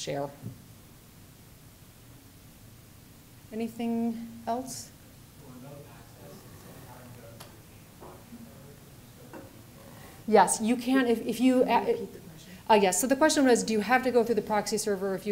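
A woman speaks calmly into a microphone, giving a lecture.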